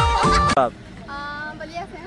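A young woman laughs cheerfully close by.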